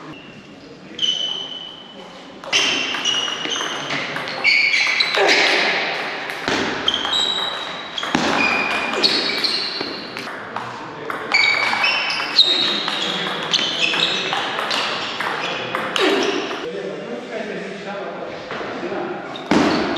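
A table tennis ball clicks back and forth between paddles and the table in a large echoing hall.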